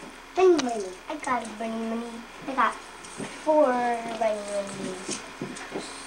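Plastic eggs click and clatter as a young boy opens them.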